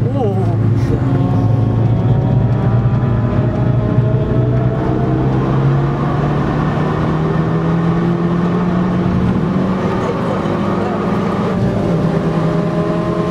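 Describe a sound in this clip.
A car engine hums loudly and rises in pitch as the car speeds up.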